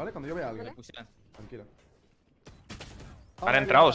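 Gunshots crack from a video game.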